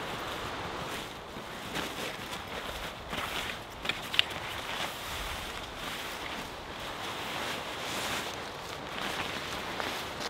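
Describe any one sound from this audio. Heavy canvas tent fabric rustles and flaps as it is unfolded.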